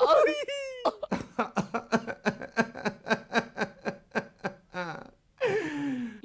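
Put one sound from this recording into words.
A man lets out a high, quivering wail.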